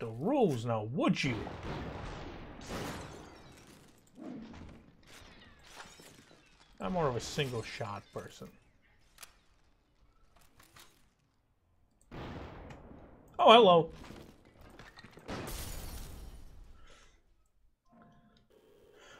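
Gunshots fire with sharp bangs.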